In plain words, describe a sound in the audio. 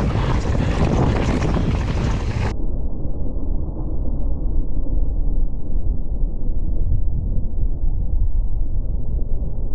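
Wind rushes loudly past a moving rider.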